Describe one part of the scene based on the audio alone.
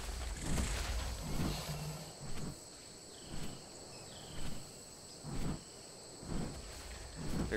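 Large wings flap in steady, regular beats.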